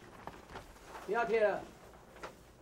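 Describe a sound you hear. A young woman speaks firmly from across the room.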